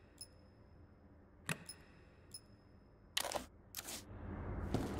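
Short electronic menu clicks and beeps sound.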